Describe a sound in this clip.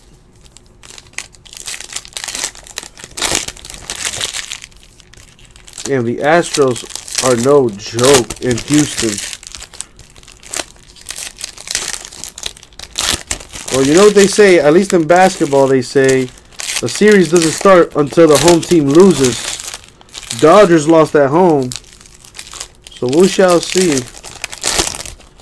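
Foil card packs crinkle and rustle.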